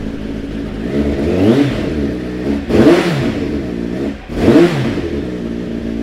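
A motorcycle engine revs loudly several times.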